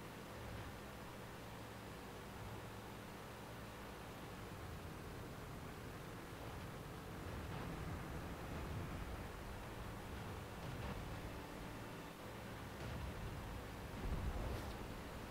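Tank tracks clank and grind over sand.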